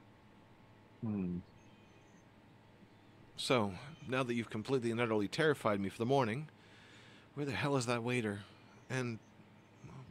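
A man speaks calmly into a close microphone over an online call.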